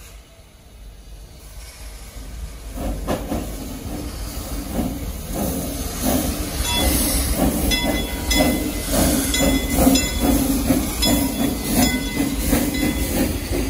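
A steam locomotive hisses loudly as it releases steam.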